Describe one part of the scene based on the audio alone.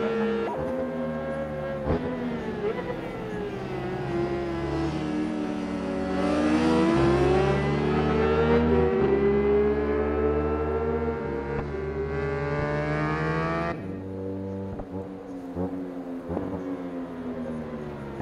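A motorcycle engine revs hard, its pitch rising and falling through gear changes.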